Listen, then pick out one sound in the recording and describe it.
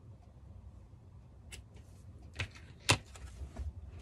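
Scissors snip once.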